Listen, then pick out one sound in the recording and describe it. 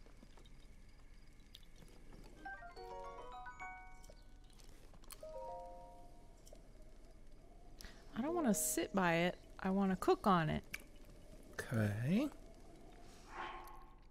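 A small fire crackles under a pot.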